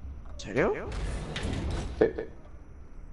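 A heavy metal door slides open with a rumble.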